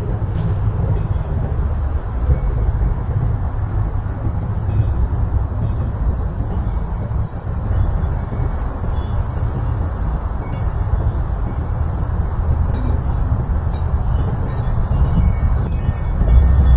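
Wind buffets the microphone outdoors in steady gusts.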